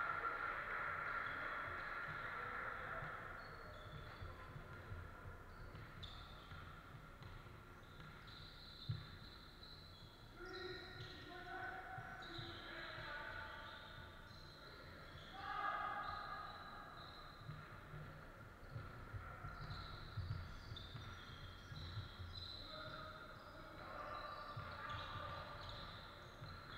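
Sneakers squeak sharply on a hardwood floor in a large echoing hall.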